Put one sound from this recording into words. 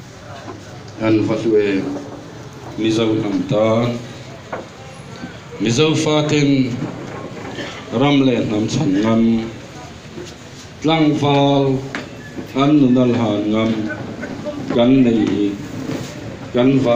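A crowd of men chants loudly in repeated bursts.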